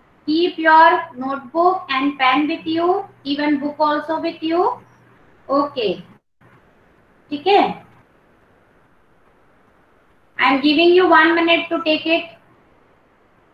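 A young woman speaks calmly through an online call, in short bursts with pauses.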